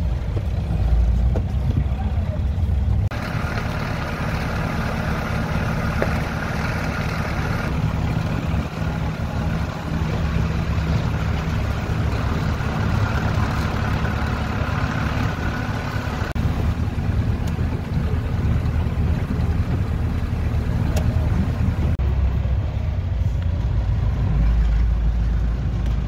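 A vehicle engine rumbles steadily from inside the cabin.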